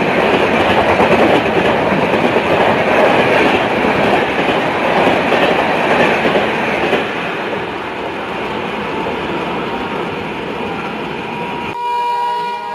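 A passing train rumbles and roars close by, then fades as it moves away.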